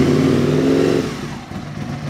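A V-twin sport motorcycle engine revs briefly.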